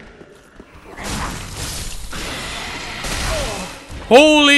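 A magical blast whooshes and roars.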